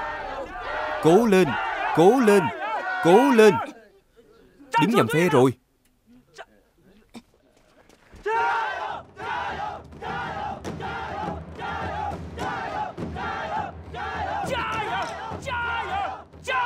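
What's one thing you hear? An older man shouts loudly.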